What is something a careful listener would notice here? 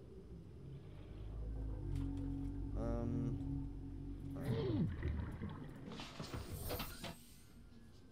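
A small submarine's motor hums low and steady.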